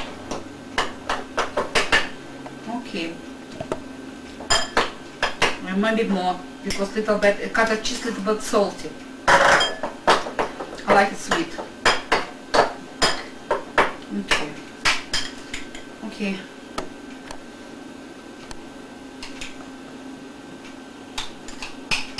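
A fork clinks and scrapes against a bowl.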